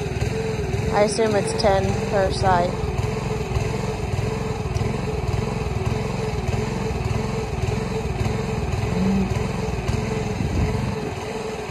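A hydraulic pump motor hums steadily close by.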